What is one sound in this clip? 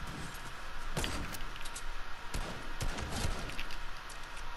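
A sniper rifle fires loud single shots in a video game.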